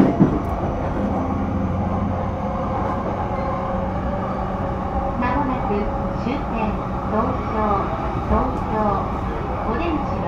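An electric train hums and rumbles steadily.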